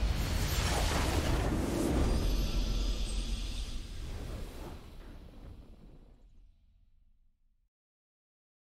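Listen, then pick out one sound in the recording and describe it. A triumphant fanfare swells and slowly fades away.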